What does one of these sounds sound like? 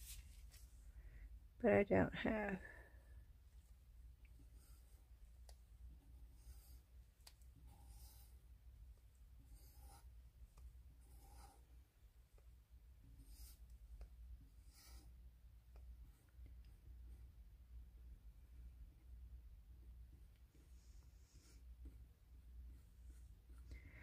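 Silicone creaks and peels softly as a hardened piece is worked free from a mould.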